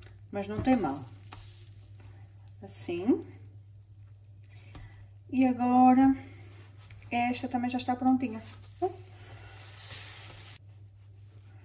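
Pancakes sizzle softly in a frying pan.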